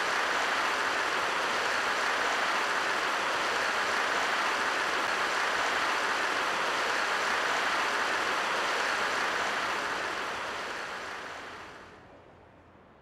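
A crowd applauds loudly, then the applause fades away.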